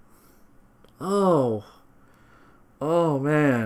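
A young man groans loudly in frustration.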